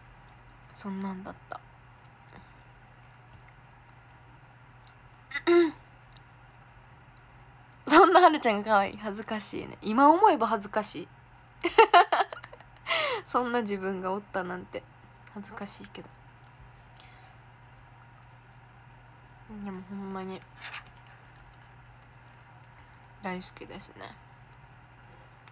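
A young woman talks close to a microphone, in short bursts.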